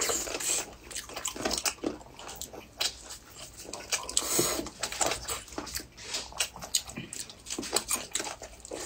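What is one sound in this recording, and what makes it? A woman chews and smacks her lips close to a microphone.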